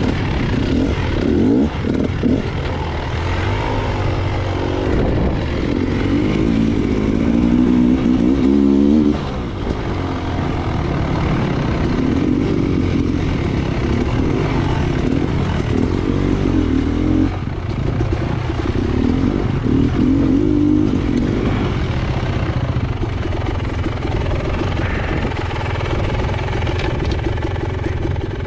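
A dirt bike engine revs and rumbles up close, its pitch rising and falling.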